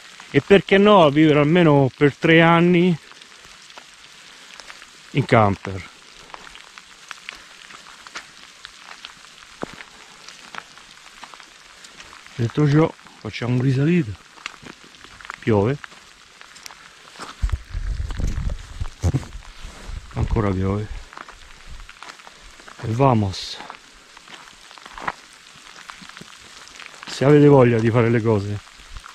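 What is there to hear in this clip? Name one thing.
A middle-aged man talks calmly in short bursts, close by.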